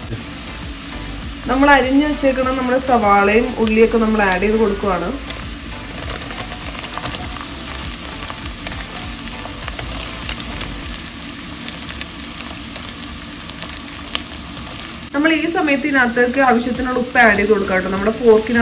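Oil sizzles and crackles in a pan.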